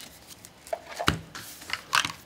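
A card box is set down on a table with a soft thud.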